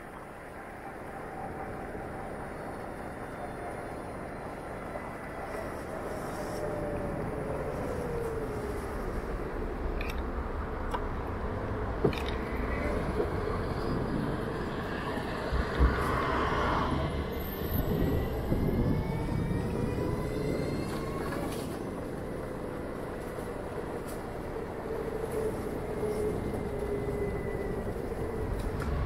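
An electric scooter hums steadily as it rides along a city street, its pitch rising and falling with speed.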